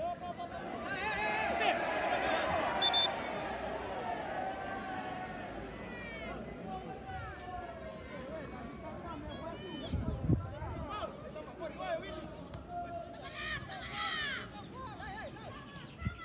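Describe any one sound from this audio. Men shout and call out to each other across an open pitch outdoors.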